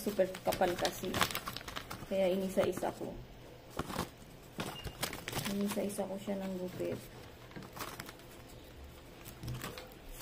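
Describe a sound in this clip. Stiff paper rustles and crinkles close by.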